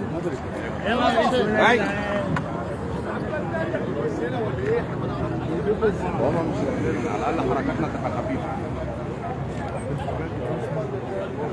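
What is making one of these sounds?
A crowd of men talks and shouts at once, close by.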